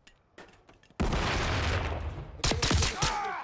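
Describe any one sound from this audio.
Gunshots crack loudly nearby.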